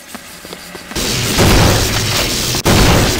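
Gunfire rattles loudly in bursts.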